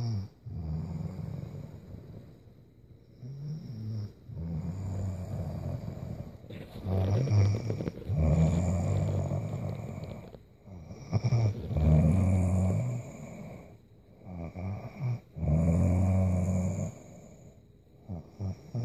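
A woman snores loudly and deeply close by.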